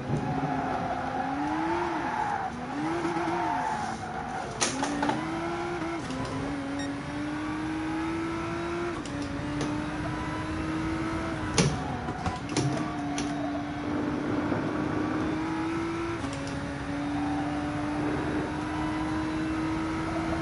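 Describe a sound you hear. A race car engine revs and drones, shifting gears.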